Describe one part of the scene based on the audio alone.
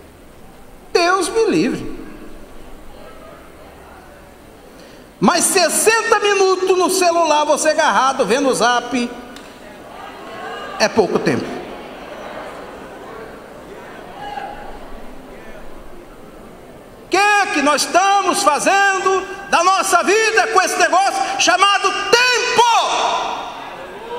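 A middle-aged man preaches with passion into a microphone, his voice ringing through an echoing hall.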